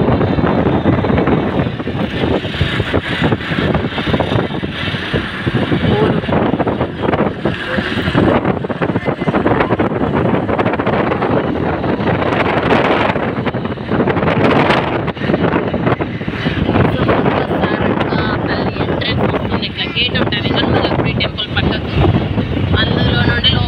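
Wind rushes loudly past the open window of a moving vehicle.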